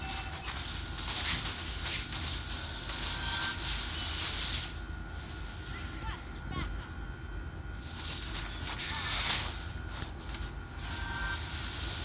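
Swords clash and strike during a fight.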